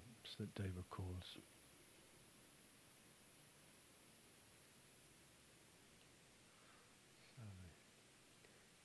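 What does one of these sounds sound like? An elderly man speaks briefly and calmly through a microphone.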